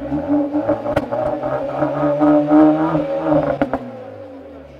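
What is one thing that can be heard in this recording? A car exhaust pops and crackles sharply.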